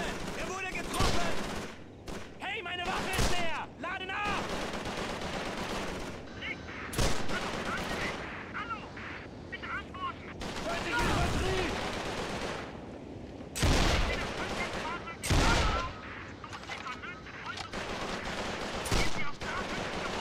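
Rifle shots fire one at a time, loud and close, with a short echo.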